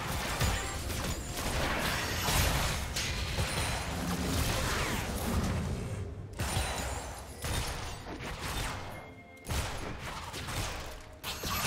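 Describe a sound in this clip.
Magic blasts whoosh and burst during a fight.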